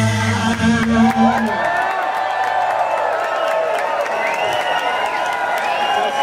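A rock band plays loudly through big speakers with electric guitars.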